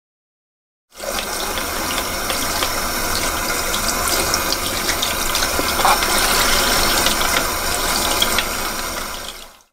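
Water runs from a tap and splashes over hands.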